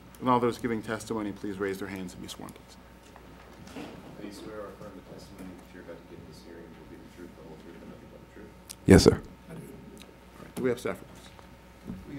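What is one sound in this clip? A man speaks firmly into a microphone.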